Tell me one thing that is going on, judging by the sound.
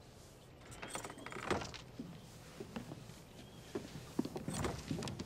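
Leather creaks and knocks as a saddle is handled.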